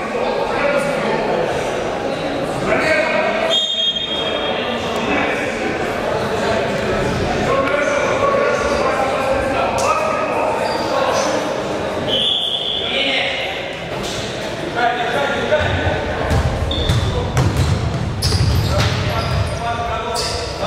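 Sneakers squeak sharply on a wooden gym floor.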